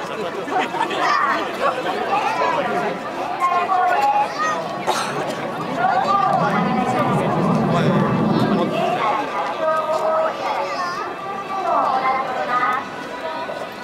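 Nearby men and women talk with animation.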